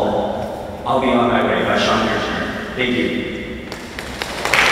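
A young man speaks calmly into a microphone in a large echoing hall.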